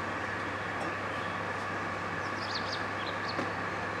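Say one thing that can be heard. Metal weight plates clank as a dumbbell is lifted from the ground.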